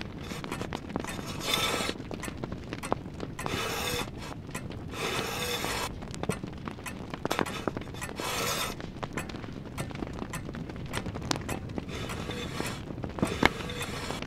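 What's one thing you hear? Chess pieces slide and knock on a wooden board.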